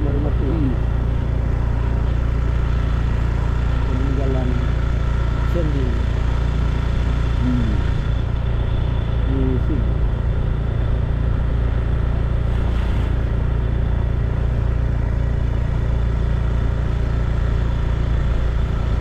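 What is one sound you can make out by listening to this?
A motorbike engine hums steadily while riding along a road.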